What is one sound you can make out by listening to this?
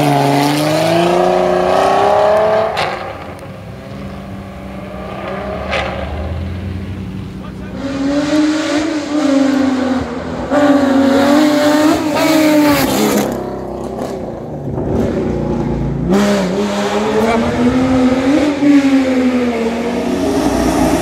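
A sports car engine roars loudly nearby, revving up and down through the gears.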